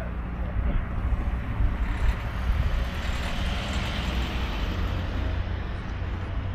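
A van drives past and fades.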